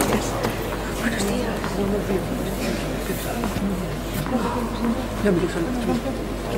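Tennis balls are struck with rackets, with sharp pops at intervals.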